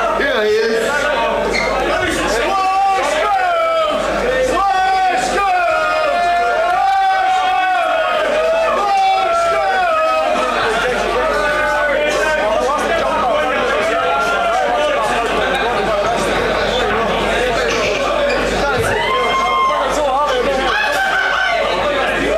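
A man shouts and sings into a microphone.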